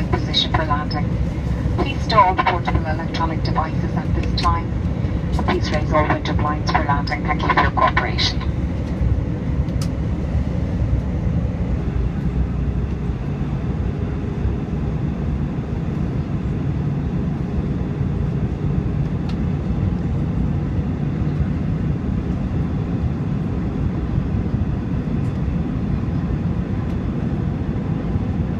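A jet engine roars steadily inside an airplane cabin.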